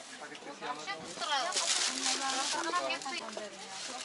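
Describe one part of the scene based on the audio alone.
People chatter nearby.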